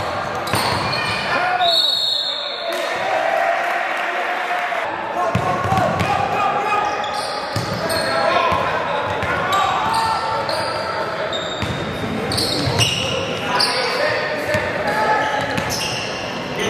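Spectators chatter and call out in the background.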